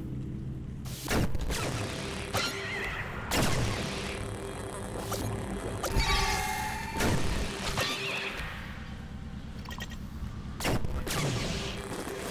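Laser blasts zap repeatedly from a game.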